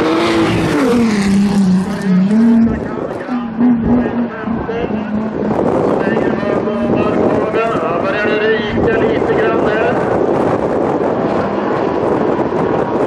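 A race car engine roars and revs up and down.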